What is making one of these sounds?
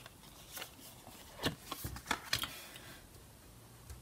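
A card is laid down onto a hard table with a soft tap.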